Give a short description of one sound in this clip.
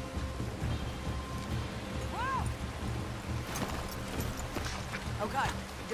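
Horses' hooves clop on a dirt path.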